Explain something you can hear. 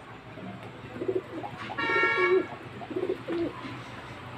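Pigeons coo softly nearby.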